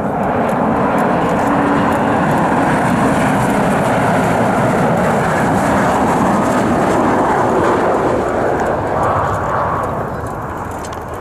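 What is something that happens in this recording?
A jet airliner's engines roar loudly as it flies in low to land.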